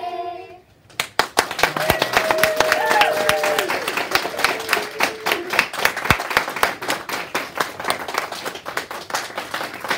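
Children clap their hands in a quick rhythm.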